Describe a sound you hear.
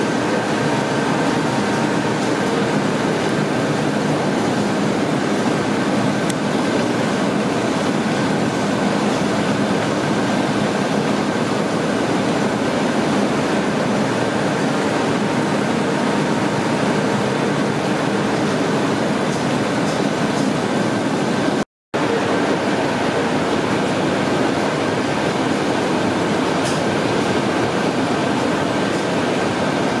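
Industrial machinery hums and rattles steadily.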